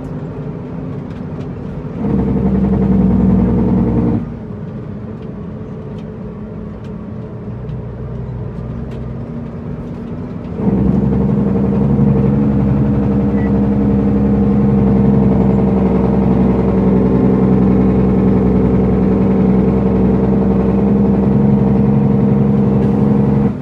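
A large truck engine rumbles from inside the cab, growing louder at times as the truck accelerates.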